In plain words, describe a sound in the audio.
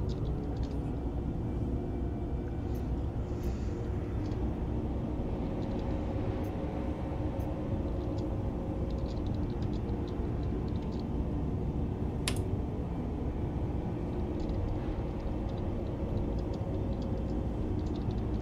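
A spacecraft engine hums with a steady low rumble.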